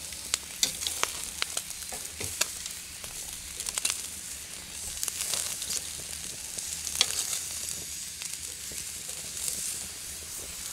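Meat sizzles and crackles over a fire.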